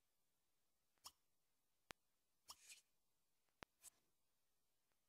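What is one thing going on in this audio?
Short soft clicks of a game menu sound a few times.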